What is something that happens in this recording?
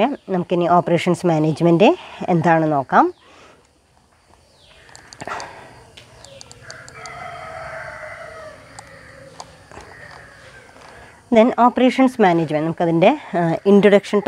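A woman speaks calmly and clearly into a close microphone, pausing now and then.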